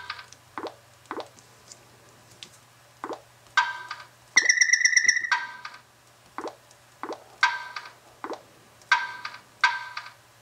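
A small handheld game beeps and chimes with short electronic sound effects through a tinny speaker.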